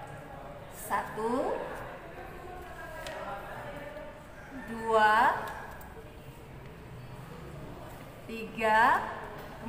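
Paper rustles and crinkles as hands fold a sheet.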